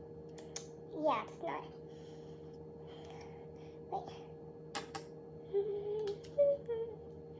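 A young girl speaks in a high, sped-up voice close by.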